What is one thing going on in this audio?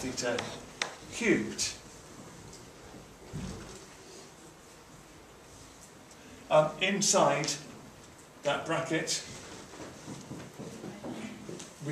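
A man speaks calmly and explains.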